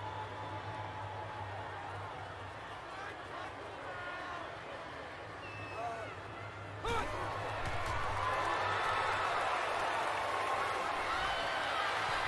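A stadium crowd cheers, swelling suddenly louder.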